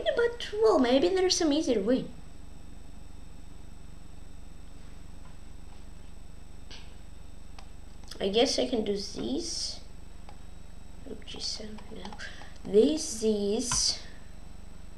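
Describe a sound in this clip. A boy talks calmly into a microphone, in short bursts with pauses.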